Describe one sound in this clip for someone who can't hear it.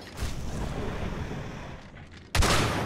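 A fiery explosion booms and roars.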